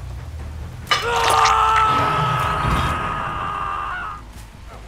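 A woman cries out in pain.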